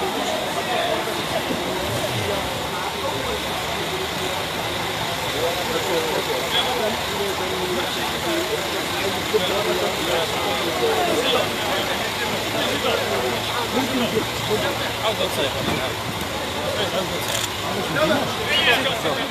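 A crowd of men chatters all around, close by.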